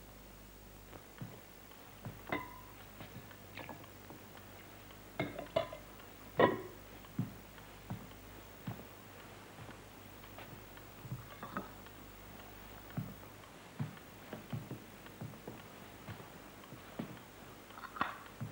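China plates and a ladle clink.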